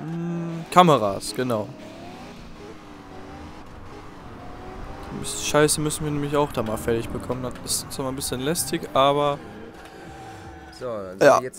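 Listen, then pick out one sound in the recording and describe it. Car tyres screech on asphalt.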